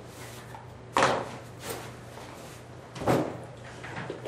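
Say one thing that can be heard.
Objects knock on a table.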